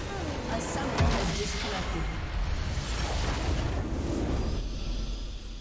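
A crystal structure bursts with a loud blast and rumble.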